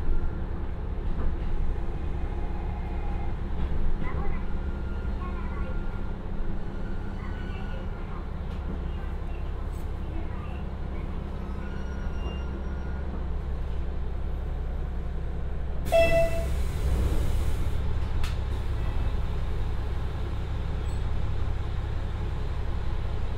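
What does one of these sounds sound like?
A diesel engine rumbles steadily close by.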